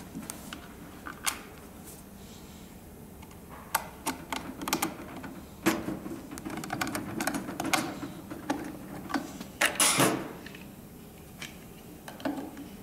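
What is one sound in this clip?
Plastic parts click and snap as a pump head is fitted and removed.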